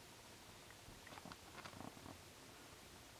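A baby coos softly up close.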